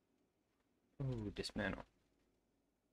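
A man speaks briefly and casually into a close microphone.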